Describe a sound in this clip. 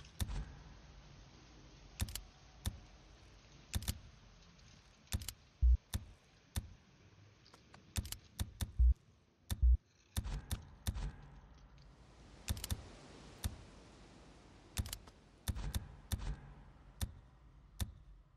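Short game menu clicks tick again and again as items are picked.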